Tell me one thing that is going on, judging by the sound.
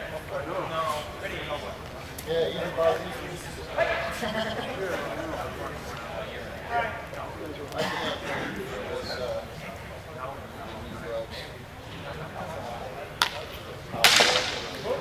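A man speaks in a large echoing hall.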